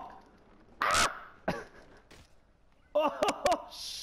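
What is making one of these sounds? A body thuds hard onto the ground.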